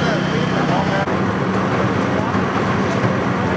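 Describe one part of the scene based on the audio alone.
An engine hums steadily nearby.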